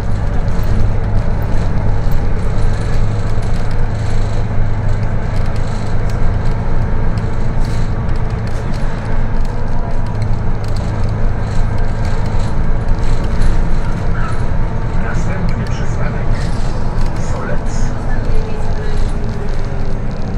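A bus body rattles and clatters over the road.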